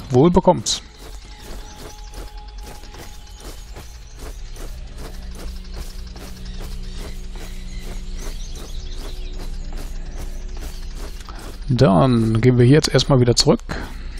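Footsteps tread steadily through grass.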